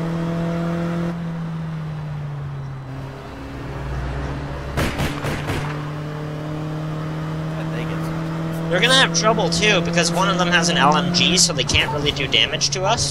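A car engine hums steadily and changes pitch as the car drives.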